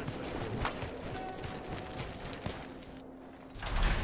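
Footsteps crunch over dirt.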